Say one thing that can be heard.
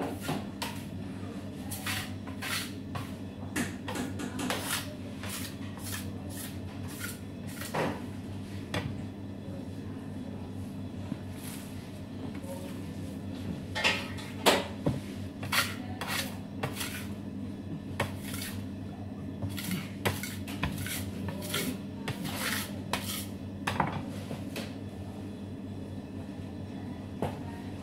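Hands slap and knead sticky dough on a metal table.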